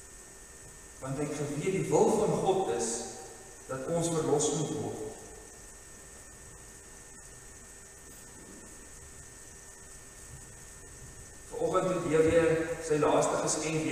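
An older man sings slowly into a microphone, in short phrases with pauses between them.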